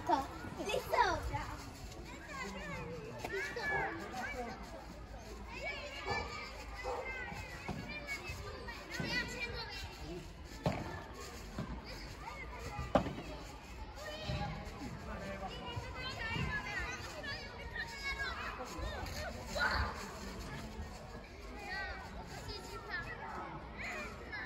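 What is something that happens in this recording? Men call out and talk during play.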